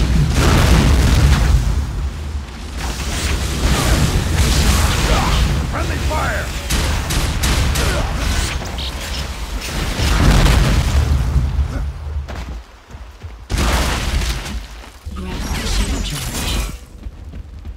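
Heavy gunfire and explosions boom in quick bursts.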